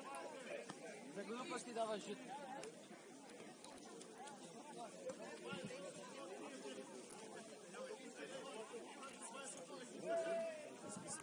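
Young men call and shout to each other across an open field.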